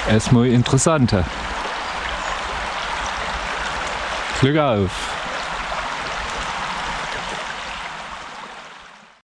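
A small stream babbles and gurgles over rocks.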